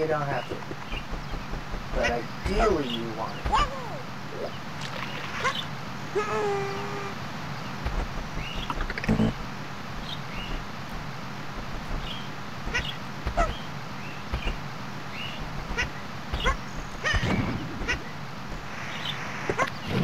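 Cartoonish sound effects chirp and pop as a small creature jumps and flutters.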